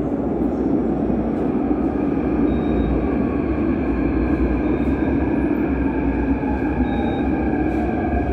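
Train brakes squeal with steady high whines.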